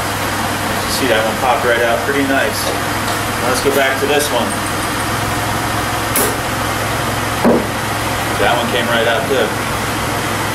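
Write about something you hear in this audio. A man talks calmly and close by, explaining.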